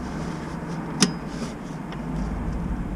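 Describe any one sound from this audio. A metal tool clicks and knocks against metal parts.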